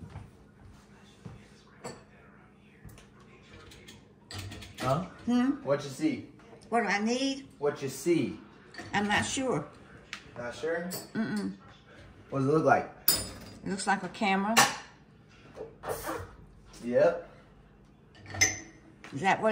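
Dishes clink as they are set into a dishwasher rack.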